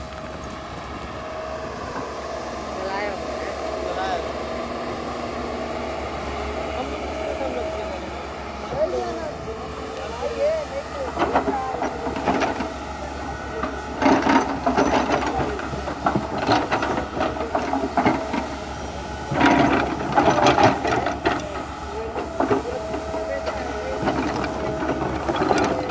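An excavator engine hums and whines steadily nearby.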